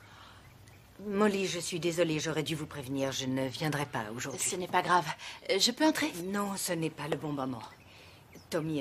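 An elderly woman speaks with agitation, close by.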